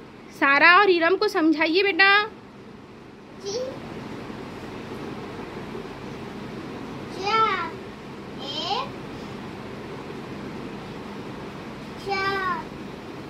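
A young child speaks in a high voice, close by.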